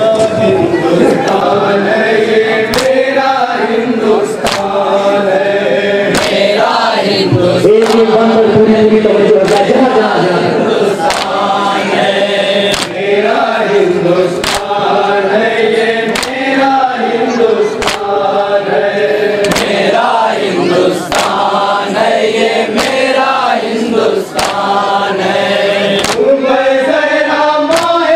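A group of men chant together in rhythm.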